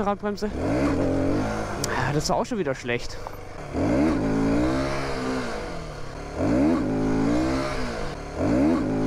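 Wind rushes loudly past a moving motorcycle.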